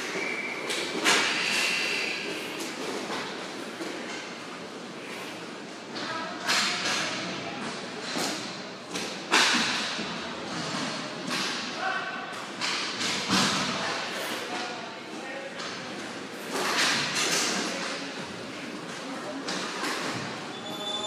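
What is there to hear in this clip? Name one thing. A crowd cheers and murmurs in a large echoing hall.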